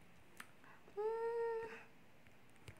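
A young woman hums a short rising note.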